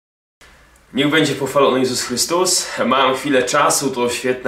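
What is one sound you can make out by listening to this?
A young man talks calmly and clearly into a close microphone.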